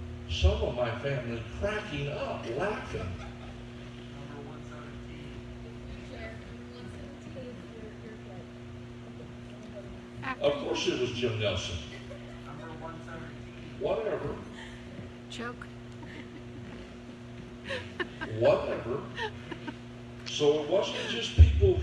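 An elderly man speaks calmly through a microphone, with pauses, in an echoing room.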